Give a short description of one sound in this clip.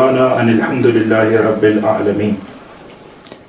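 A man recites in a steady, melodic voice into a close microphone.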